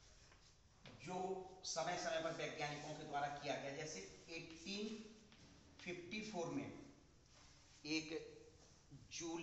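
A man speaks clearly and calmly into a small microphone nearby.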